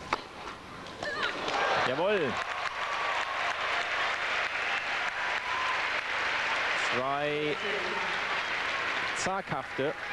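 A crowd applauds loudly and then dies down.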